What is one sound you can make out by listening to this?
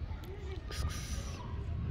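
A kitten meows.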